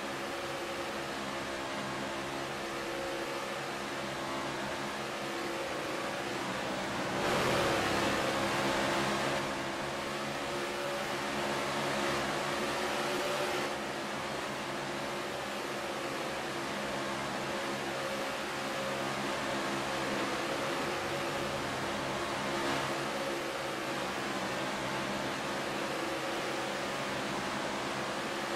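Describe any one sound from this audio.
Car engines drone steadily as race cars speed along a track.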